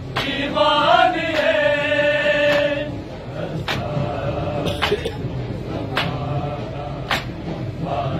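A crowd of men beat their chests in slow, steady slaps.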